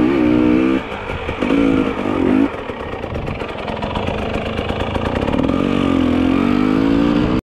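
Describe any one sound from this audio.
A motorcycle engine hums and revs, rising and falling in pitch.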